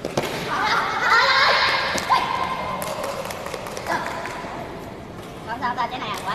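A ball is struck with sharp slaps.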